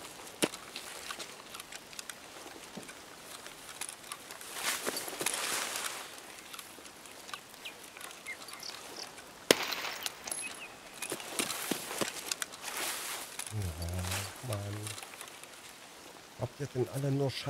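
Footsteps crunch over wet ground and grass.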